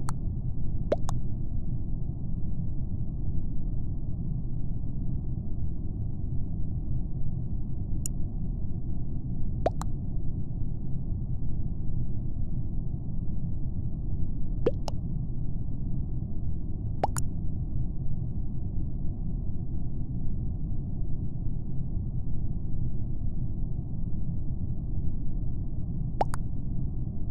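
A game's chat gives short popping alerts now and then.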